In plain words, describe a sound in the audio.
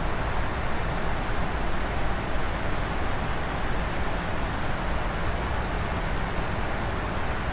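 Jet engines roar steadily with a rushing of air.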